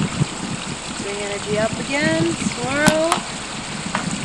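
A woman speaks calmly outdoors, close by.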